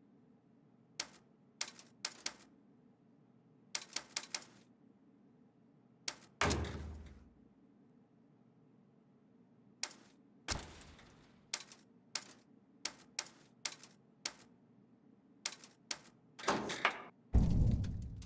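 Menu interface sounds click and tick as selections change.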